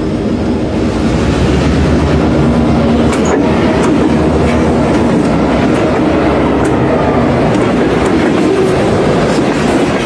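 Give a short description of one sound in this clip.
A diesel locomotive rumbles past up close.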